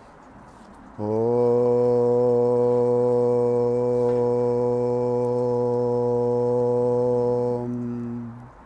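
A man chants one long, low, steady tone close by.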